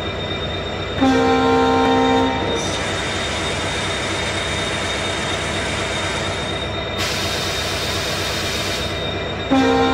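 A locomotive horn blares.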